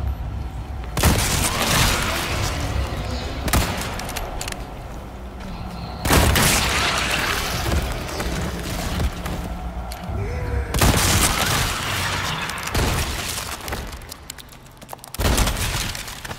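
Loud rifle shots boom and echo, several times.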